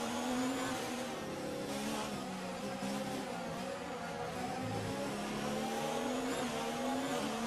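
A racing car engine hums steadily, its pitch shifting up and down.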